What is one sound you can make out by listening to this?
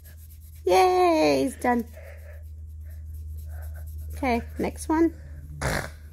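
A child speaks up close with animation.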